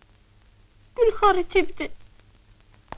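A young girl speaks quickly and anxiously.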